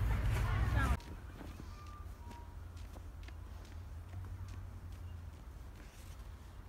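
Snow crunches under a boy's hands nearby.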